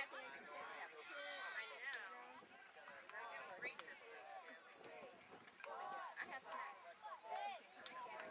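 Young girls chant and cheer together outdoors.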